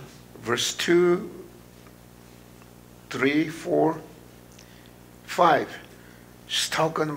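An elderly man speaks slowly and solemnly into a microphone, with pauses between phrases.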